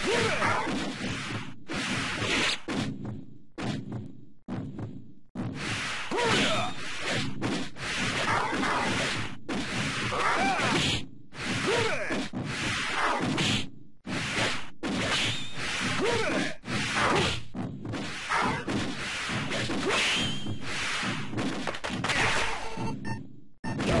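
Game music plays.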